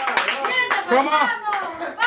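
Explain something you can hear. A young woman claps her hands.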